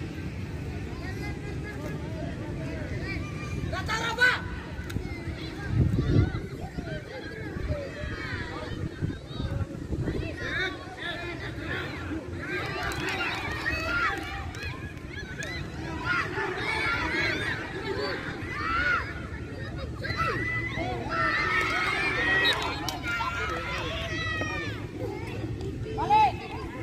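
Boys shout and call out to each other at a distance outdoors.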